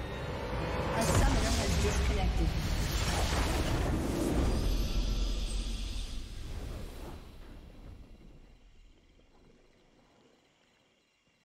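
A triumphant game fanfare swells and then slowly fades away.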